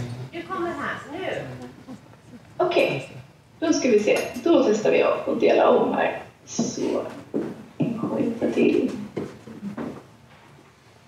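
A woman speaks through a loudspeaker from an online call.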